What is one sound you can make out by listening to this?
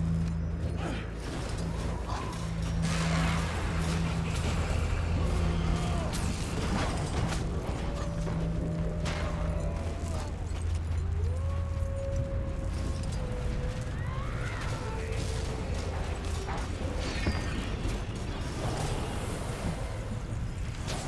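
Magic blasts and sharp hits crackle in a video game battle.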